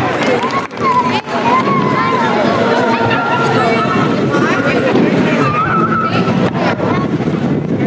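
Fireworks pop and bang overhead.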